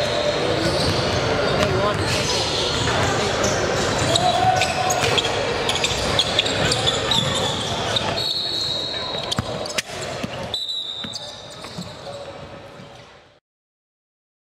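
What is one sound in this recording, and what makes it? A crowd chatters and murmurs in a large echoing hall.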